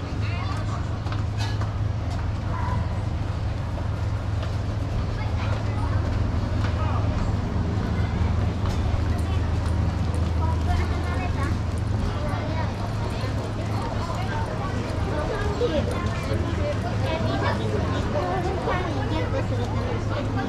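Footsteps tap on paving stones.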